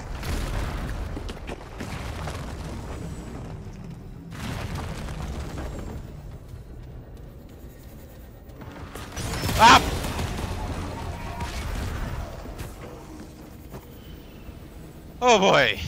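Stone blocks rumble and crumble as they break apart.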